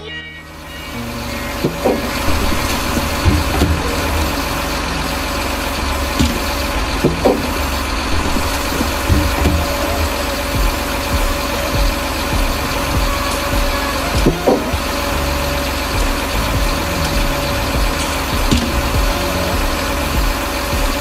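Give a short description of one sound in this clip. A hydraulic crane engine hums and whines steadily.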